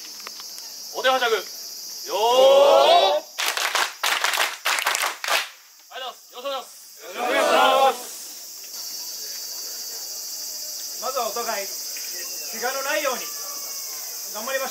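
A group of men chant loudly in unison outdoors.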